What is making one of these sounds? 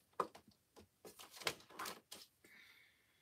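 A sheet of paper rustles as it is lifted and laid down.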